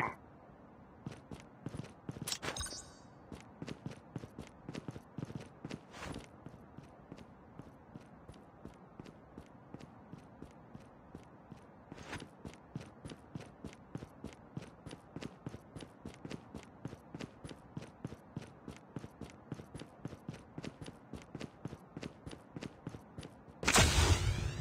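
Footsteps crunch quickly over dirt and gravel.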